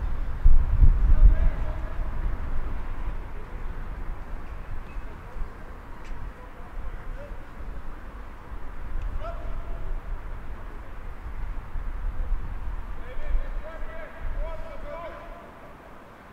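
Men talk and call out to one another outdoors.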